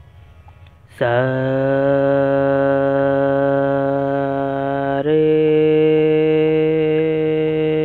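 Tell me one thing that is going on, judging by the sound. A steady musical tone holds one note, then moves to another note.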